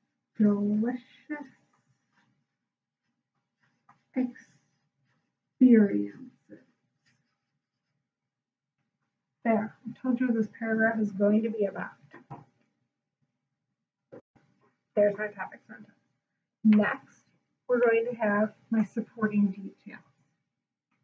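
A young woman speaks calmly and clearly, close by, in short bursts with pauses.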